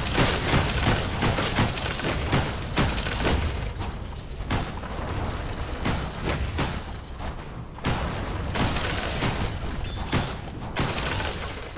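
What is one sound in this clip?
Weapons clash and spells crackle in a rapid fight.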